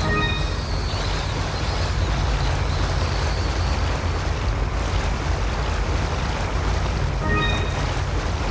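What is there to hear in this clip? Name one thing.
Water rushes steadily from a drain pipe.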